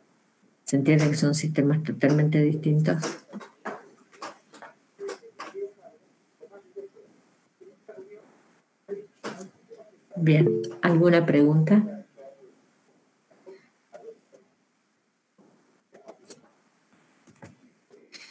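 A woman talks through an online call, with pauses.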